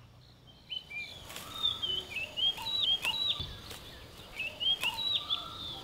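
Scissors snip through plant stalks.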